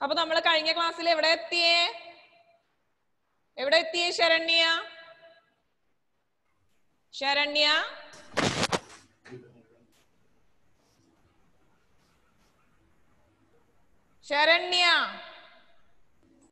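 A young woman sings in short phrases through a headset microphone, heard over an online call.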